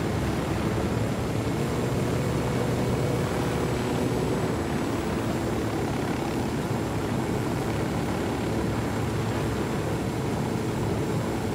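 A helicopter drones in steady flight, its rotor and turbine humming.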